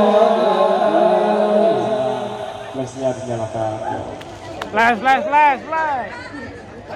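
A man chants in a drawn-out melodic voice through a loudspeaker.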